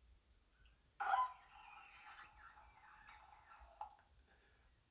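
A young man cries out in a strained voice.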